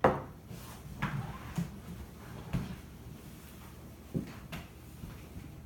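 A man's footsteps walk away across the room.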